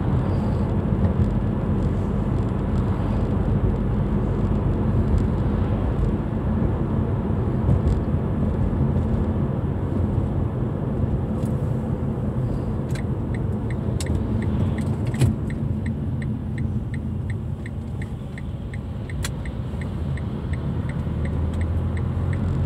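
A car engine hums steadily with tyres rumbling on the road from inside the car.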